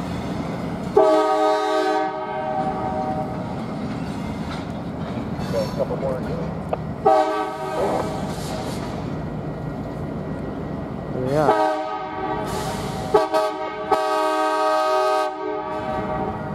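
A train horn blows in long, loud blasts nearby.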